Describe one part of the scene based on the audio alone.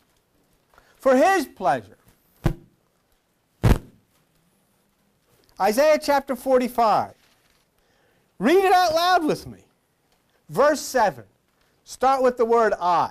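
A middle-aged man speaks calmly and steadily into a microphone, with pauses between phrases.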